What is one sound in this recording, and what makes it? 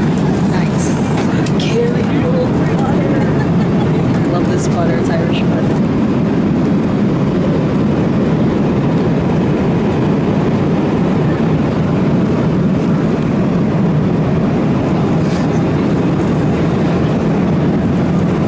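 A steady low roar of aircraft engines fills the cabin.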